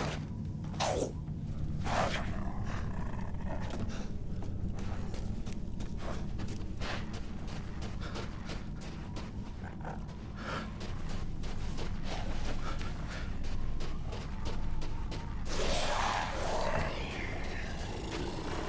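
Footsteps crunch steadily through snow.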